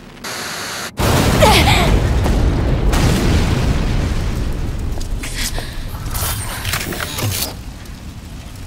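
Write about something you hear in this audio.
An explosion booms and roars, then slowly fades.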